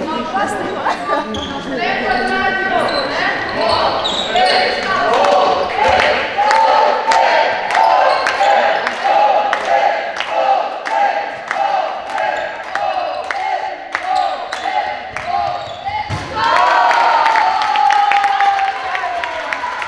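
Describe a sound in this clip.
A ball bounces sharply on a hard floor in a large echoing hall.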